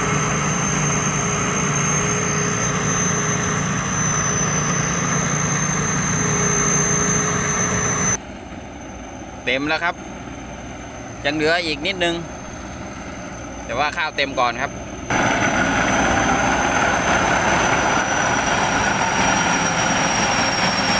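A combine harvester's engine roars and rattles close by.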